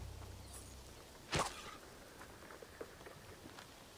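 A figure lands with a thud after a jump.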